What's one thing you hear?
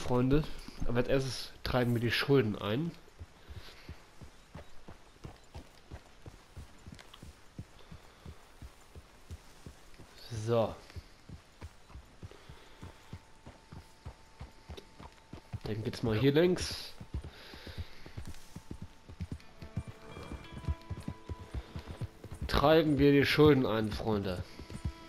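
A man speaks calmly from close by.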